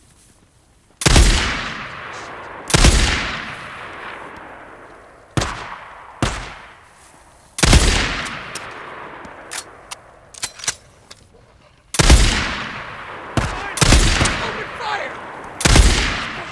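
Rifle shots crack loudly and echo away, one after another.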